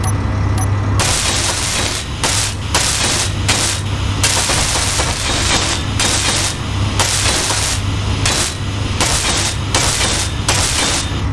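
A welding torch hisses and crackles loudly.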